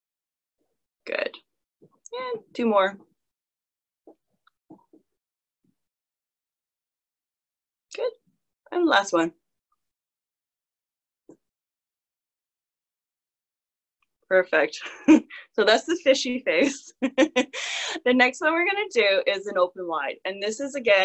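A woman speaks through a microphone on an online call, in short bursts and then with animation.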